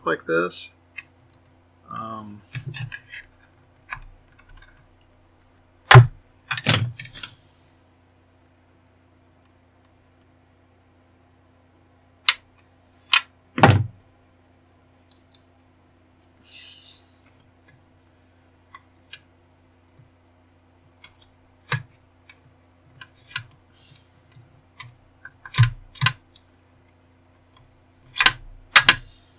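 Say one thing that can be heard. Hard plastic parts click and snap as they are pried and handled.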